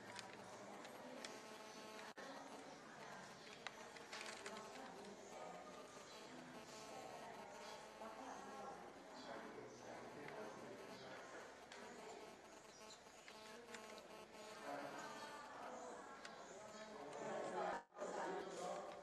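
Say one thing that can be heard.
Several young women murmur and chant softly nearby in a room.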